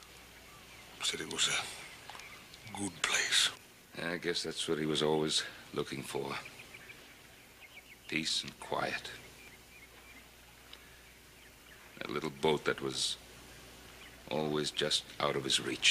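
An older man speaks firmly and gravely.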